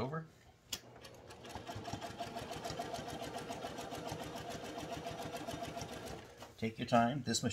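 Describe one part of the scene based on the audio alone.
A sewing machine runs with a fast, steady whirring hum.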